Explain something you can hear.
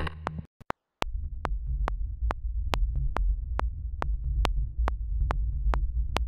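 A deep, rumbling synth drone plays.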